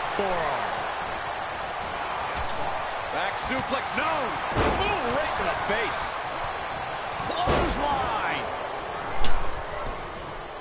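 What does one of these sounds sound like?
A crowd cheers and roars throughout.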